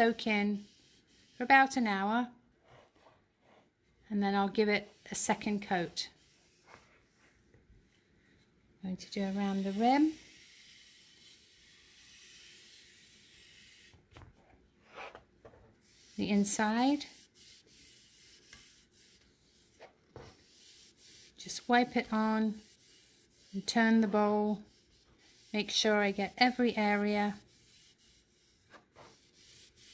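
A soft pad rubs lightly against a wooden bowl.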